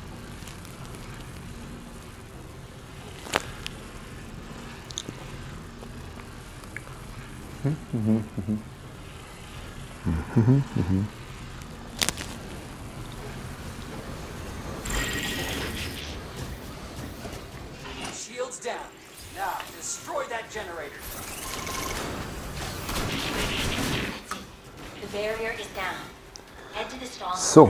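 Game sound effects whoosh and zap.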